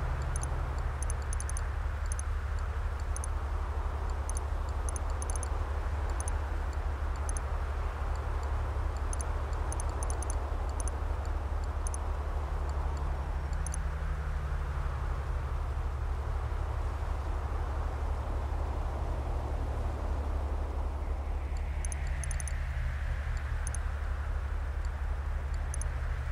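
Short electronic clicks sound as menu buttons are pressed.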